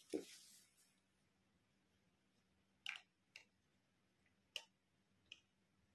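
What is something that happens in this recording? A plastic toy is set down on a soft surface.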